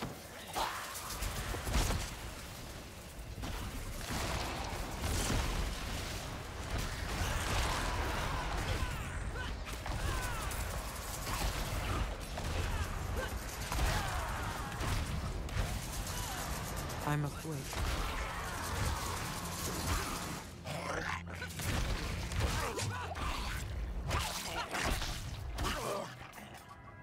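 Game combat sounds clash and crackle with booming spell effects.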